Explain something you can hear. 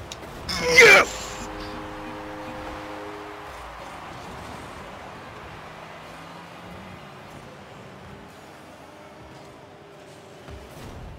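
A crowd roars and cheers in a large stadium, then slowly fades.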